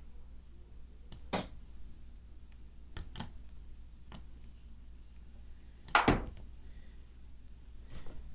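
Chess pieces click sharply as they are set down, a few times.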